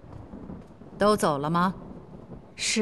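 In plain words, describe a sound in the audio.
A young woman asks a question quietly.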